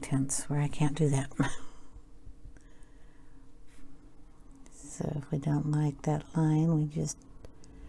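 A paintbrush brushes softly across paper.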